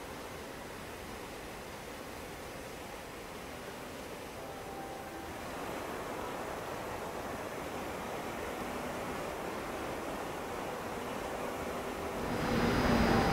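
A distant train rumbles closer along the tracks.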